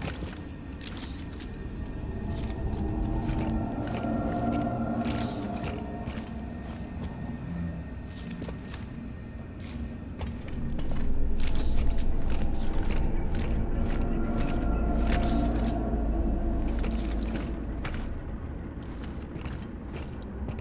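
Heavy armored boots thud and clank on a hard floor.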